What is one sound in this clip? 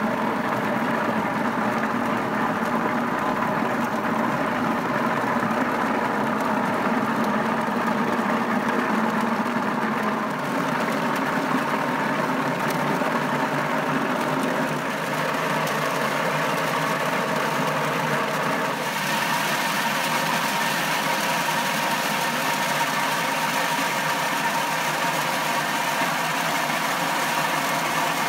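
A machine motor hums and whirs steadily.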